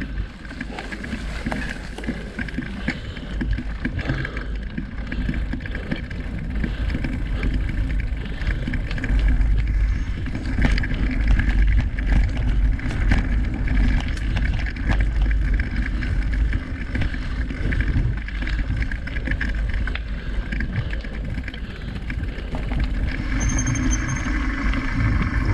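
Wind rumbles past a moving microphone.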